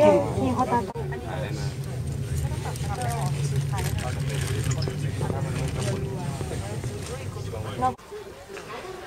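A cable car hums steadily while it moves.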